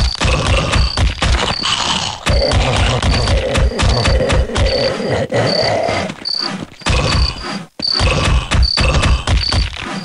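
A shovel strikes a creature with heavy, wet thuds.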